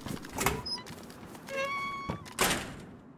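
A metal door creaks open.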